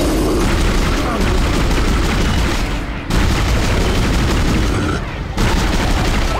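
A monster growls and shrieks while attacking.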